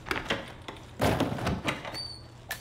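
A heavy lid bangs open on a wooden crate.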